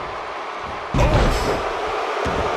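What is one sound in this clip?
A body slams onto a wrestling ring mat with a heavy thud.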